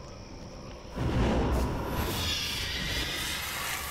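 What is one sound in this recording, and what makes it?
A magic lightning blast crackles and roars.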